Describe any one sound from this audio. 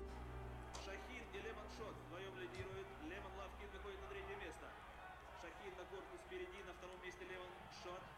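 Horses gallop along a racetrack.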